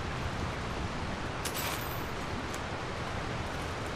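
Items rattle as they are picked up.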